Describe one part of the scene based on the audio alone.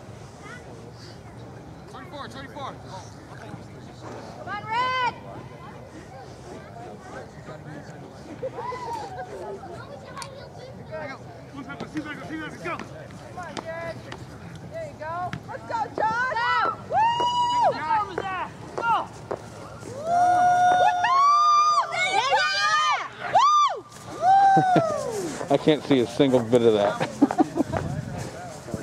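Men shout and call out to each other outdoors, some far off and some close by.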